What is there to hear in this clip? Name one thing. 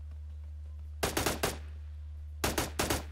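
An assault rifle fires in short bursts.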